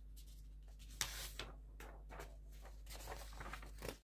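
A sheet of paper rustles as a hand moves it.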